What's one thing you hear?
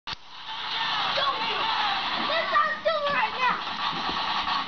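Children shout and squeal excitedly outdoors.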